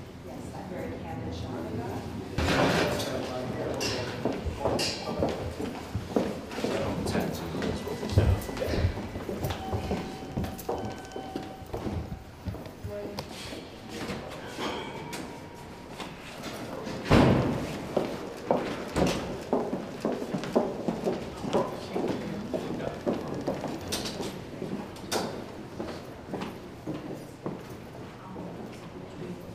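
Footsteps shuffle and tap on a hard floor.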